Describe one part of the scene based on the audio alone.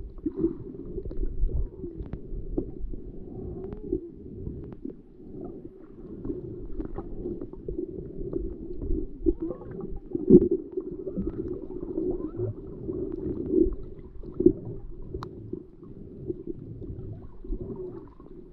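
Muffled underwater sound rumbles and bubbles steadily close by.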